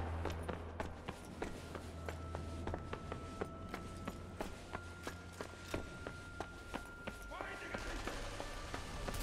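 Footsteps crunch steadily on a gritty floor.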